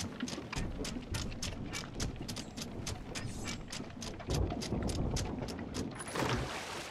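Footsteps thud quickly on a wooden ship deck.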